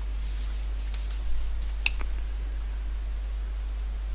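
A sheet of paper rustles as a page is turned.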